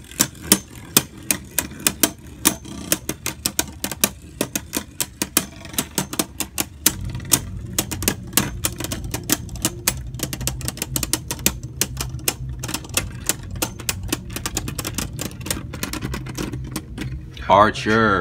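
Spinning tops clatter sharply against each other in a plastic bowl.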